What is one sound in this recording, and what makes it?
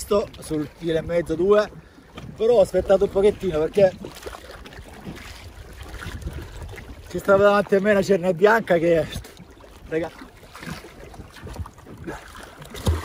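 Water splashes and laps gently around a swimmer.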